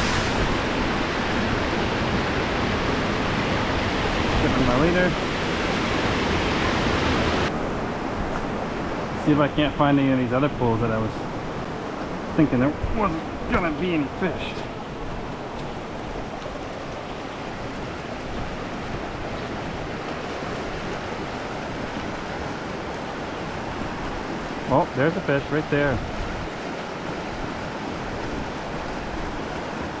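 Water rushes and splashes over rocks close by, loud at first and then softer.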